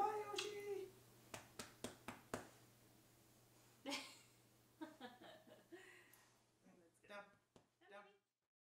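A young woman talks and laughs softly close by.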